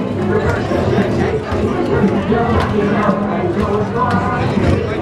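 A crowd of adults and children chatters nearby indoors.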